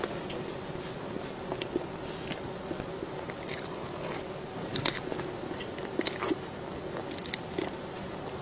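A young woman chews and smacks her lips close to a microphone.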